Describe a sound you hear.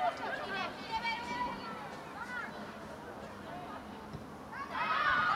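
Young women shout to each other in the distance outdoors.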